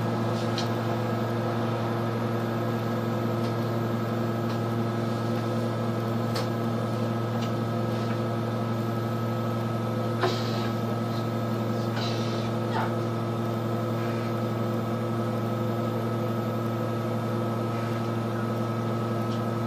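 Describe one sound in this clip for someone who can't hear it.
A bus engine hums steadily while idling.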